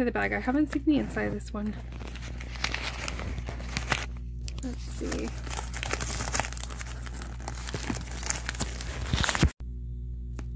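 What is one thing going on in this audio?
A stiff bag rustles and crinkles as hands handle it.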